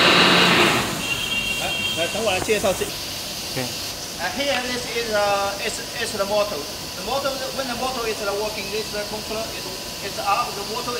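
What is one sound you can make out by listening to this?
A middle-aged man speaks calmly and explains, close by.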